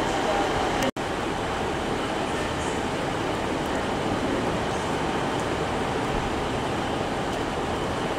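A diesel train engine idles steadily.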